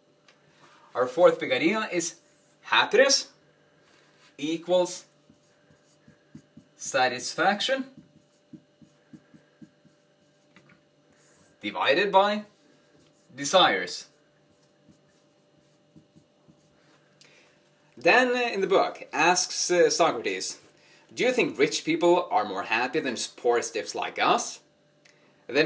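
A young man speaks calmly and close by, in short phrases with pauses.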